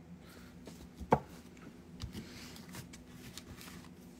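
A stone knocks down onto a table.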